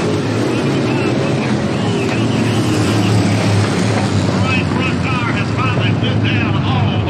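Race car engines roar loudly around a dirt track.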